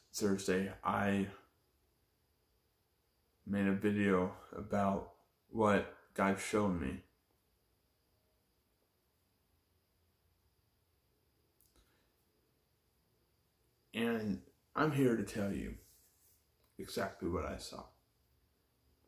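A young man speaks calmly and close up, in short bursts with pauses.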